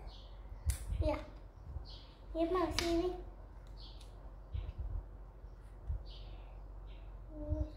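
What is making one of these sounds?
A young girl speaks softly up close.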